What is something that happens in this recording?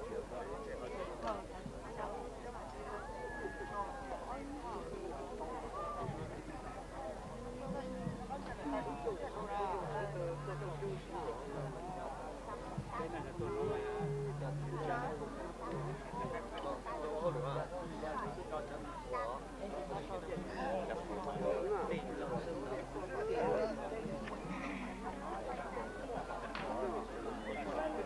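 A crowd of men and women chatters outdoors all around.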